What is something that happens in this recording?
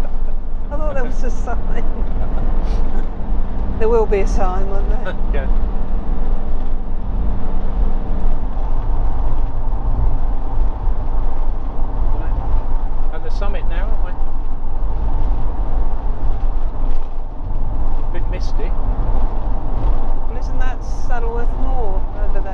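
A car drives steadily along a road with a low engine hum and tyre rumble.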